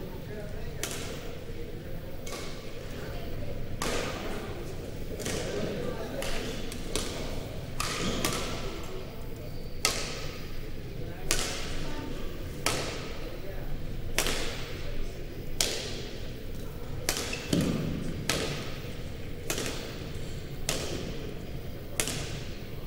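Badminton rackets hit a shuttlecock back and forth with sharp pops that echo through a large hall.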